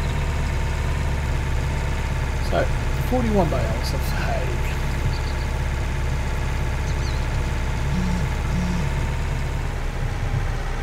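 A tractor engine drones as it pulls a loaded trailer.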